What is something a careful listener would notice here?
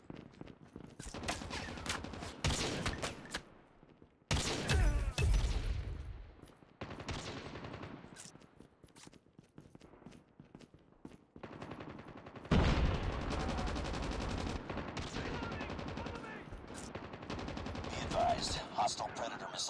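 Rifle shots crack and echo.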